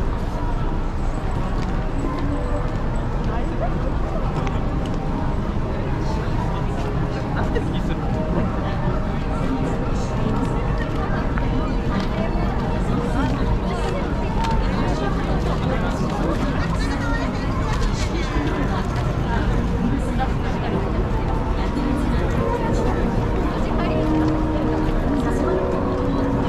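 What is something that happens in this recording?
A busy crowd murmurs all around outdoors.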